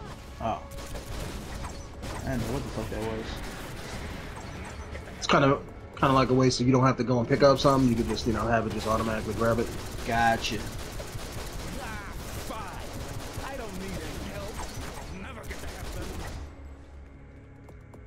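Energy blasts crackle and whoosh during a fight.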